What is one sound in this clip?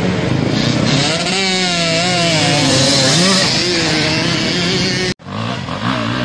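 A dirt bike engine revs loudly, its pitch rising and falling as it accelerates.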